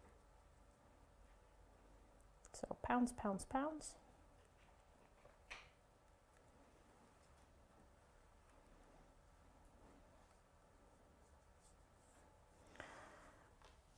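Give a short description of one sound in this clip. A paintbrush softly dabs and strokes on paper.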